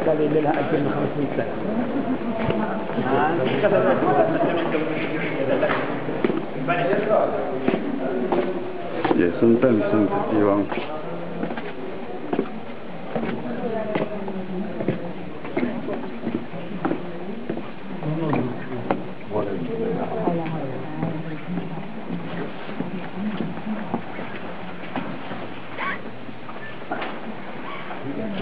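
A crowd of men and women murmur and talk nearby in an echoing hall.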